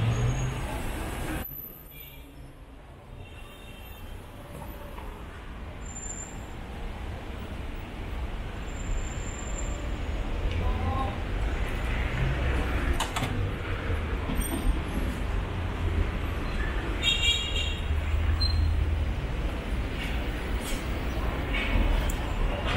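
Traffic rumbles in a busy city street outdoors.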